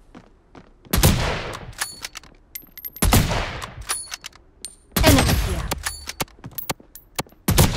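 A sniper rifle fires loud, booming shots that echo away.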